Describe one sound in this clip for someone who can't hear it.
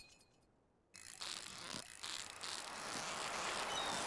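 A fishing reel whirs and clicks as a line is wound in.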